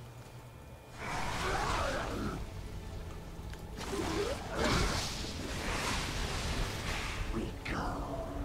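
Magic spells whoosh and burst during a fight.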